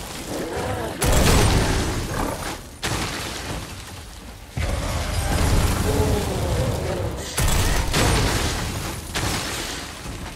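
Ice shatters with a loud crash.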